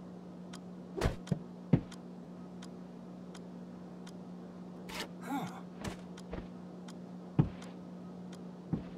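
Light objects knock and clatter.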